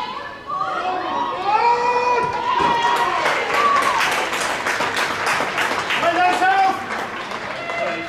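A small crowd cheers and claps outdoors.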